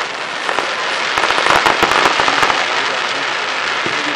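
Fireworks crackle and sizzle as sparks fall.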